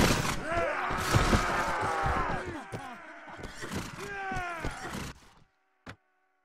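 Swords clash and ring in a loud battle.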